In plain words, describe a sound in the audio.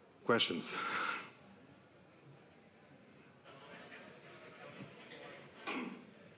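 A man speaks through a microphone in a large room.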